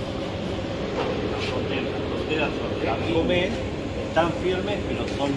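An older man talks calmly nearby.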